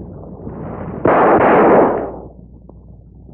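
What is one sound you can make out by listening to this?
A small firework hisses as it smokes.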